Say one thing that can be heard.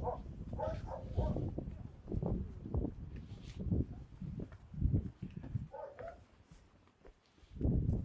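Footsteps scuff on a paved path.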